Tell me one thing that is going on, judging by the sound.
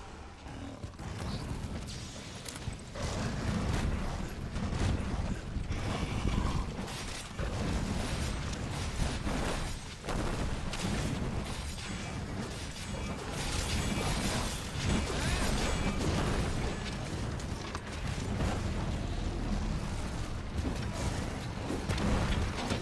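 A game's weapon strikes clash and crackle against a monster.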